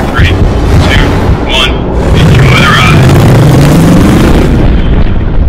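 Aircraft engines roar loudly and steadily.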